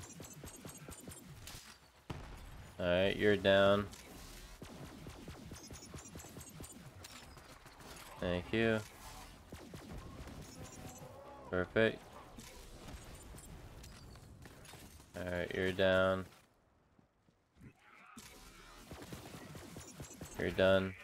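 An energy gun fires rapid bursts of shots.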